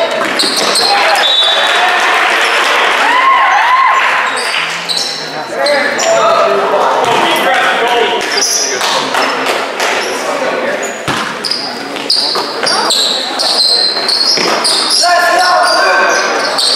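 A crowd of spectators talks and cheers in a large echoing gym.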